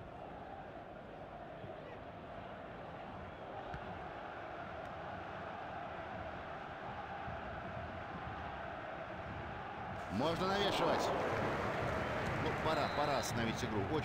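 A stadium crowd murmurs steadily and roars louder as an attack nears the goal.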